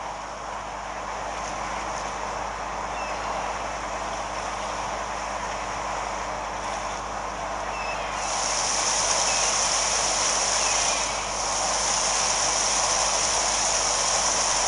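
A small propeller plane engine drones steadily.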